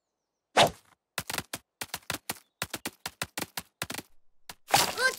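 Small feet patter quickly across the ground.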